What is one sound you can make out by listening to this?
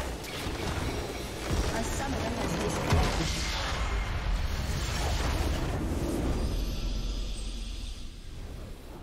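A game's base explodes with a loud booming blast.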